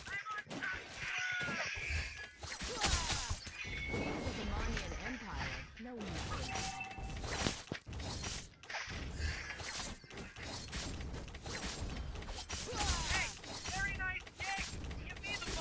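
Swords slash and clang in a fast fight.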